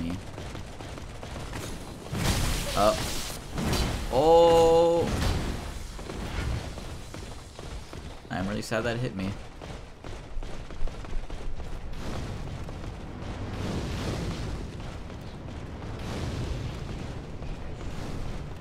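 Footsteps and armour clank as a game character runs on stone.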